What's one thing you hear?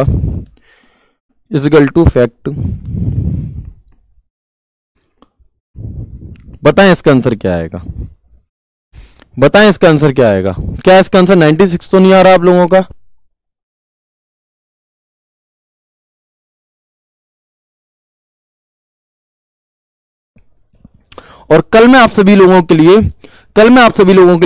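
A young man explains with animation, heard closely through a microphone, with long pauses.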